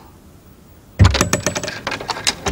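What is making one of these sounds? A door rattles open.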